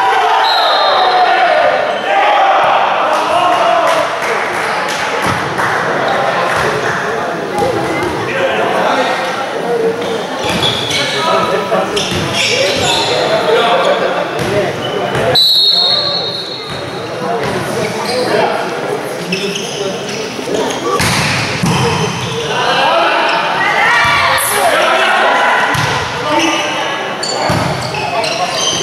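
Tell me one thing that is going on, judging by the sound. Players shout and call to each other in a large echoing hall.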